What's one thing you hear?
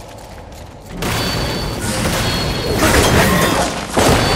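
A heavy blow strikes with a crackling burst.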